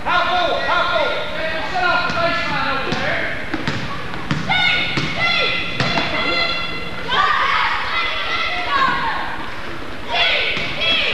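Young women players shout and call out in a large echoing gym.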